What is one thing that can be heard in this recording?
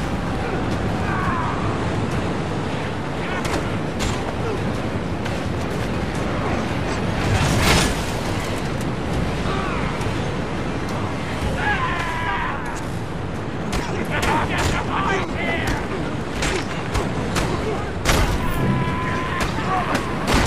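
Men grunt and shout as they fight.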